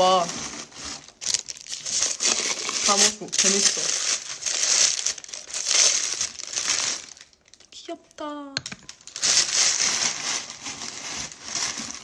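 Plastic wrapping rustles and crinkles as it is handled.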